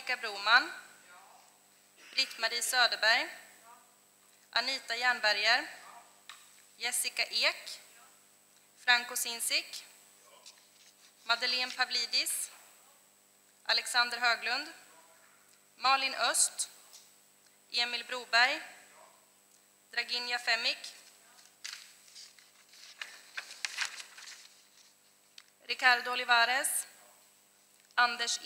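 A woman speaks into a microphone in short bursts with pauses.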